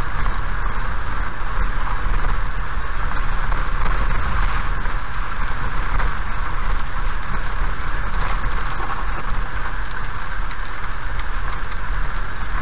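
A car drives along a wet road with a steady rumble of engine and tyres.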